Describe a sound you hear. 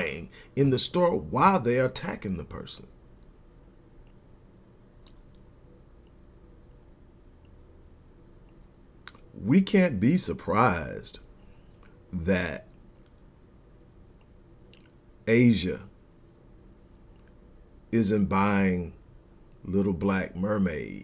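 A middle-aged man speaks calmly into a close microphone, pausing now and then.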